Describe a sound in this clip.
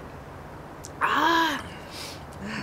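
A woman lets out a loud, satisfied sigh close by.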